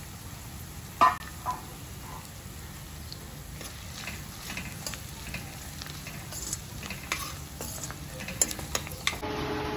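A metal spatula scrapes against a pan.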